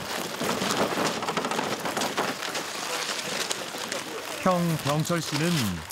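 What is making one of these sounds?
A cart rattles as it is pushed over gravel.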